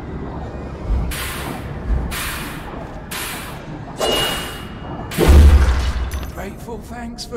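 Sharp magical blasts burst during a fight.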